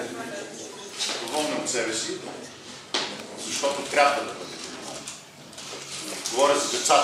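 An older man speaks up to a room, with animation.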